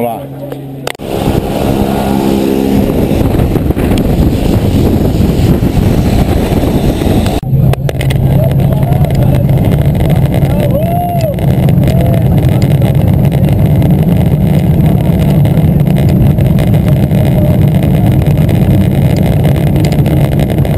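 A small plane's engine drones loudly and steadily close by.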